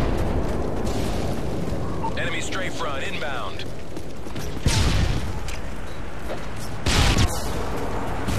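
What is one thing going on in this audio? Gunshots ring out in short, loud bursts in a video game.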